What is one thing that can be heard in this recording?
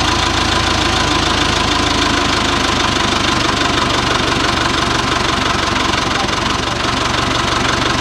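A forklift lowers a large metal tank with a whirring hydraulic whine.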